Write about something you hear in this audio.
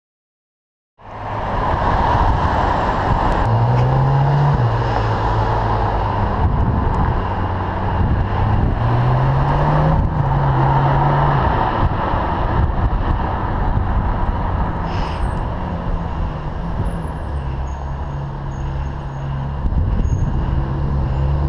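A Ferrari 458 Italia V8 accelerates hard through the gears.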